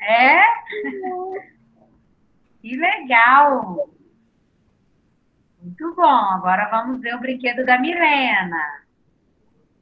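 A young woman speaks cheerfully through an online call.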